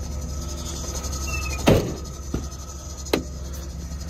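A van door clicks open.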